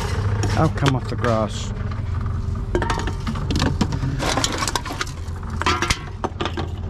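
A recycling machine hums steadily.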